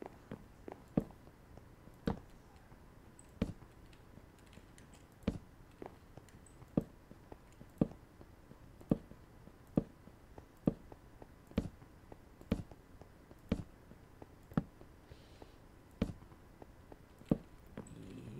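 Stone blocks are placed with short thuds in a video game.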